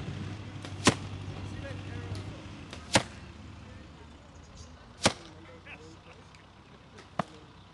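Arrows strike a target with sharp, loud thuds.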